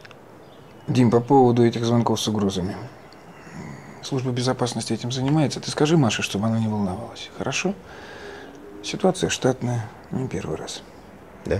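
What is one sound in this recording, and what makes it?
A middle-aged man speaks calmly and firmly nearby.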